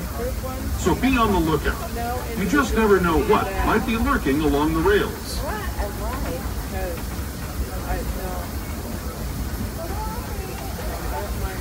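An open tram rumbles steadily along a track.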